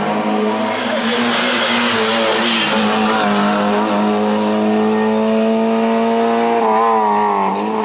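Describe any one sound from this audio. A car engine roars loudly as it races past, revving up and down through the gears.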